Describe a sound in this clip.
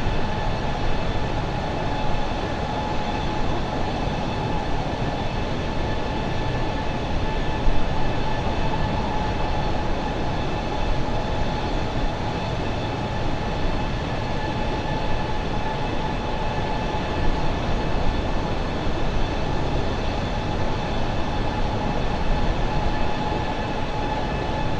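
A jet airliner's engines roar steadily with a constant whine.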